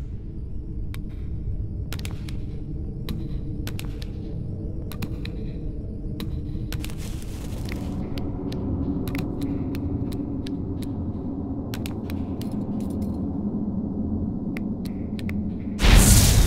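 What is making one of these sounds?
Light footsteps tap on stone.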